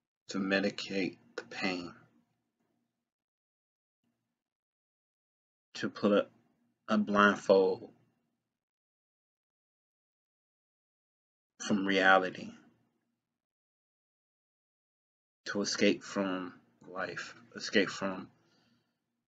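A young man speaks calmly and close to a microphone, in short phrases with pauses.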